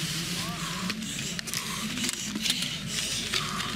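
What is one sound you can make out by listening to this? Ski poles and skis clatter on hard snow.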